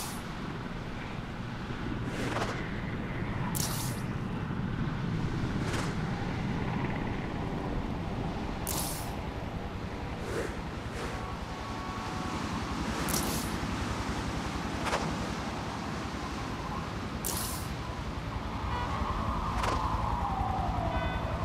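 Rushing wind roars steadily as a figure swings through the air.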